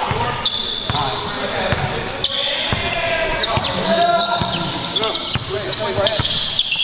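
A crowd of spectators chatters and calls out in the background.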